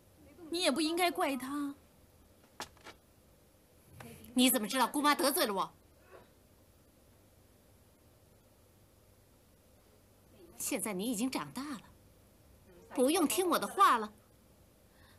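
A woman speaks firmly and clearly, close by.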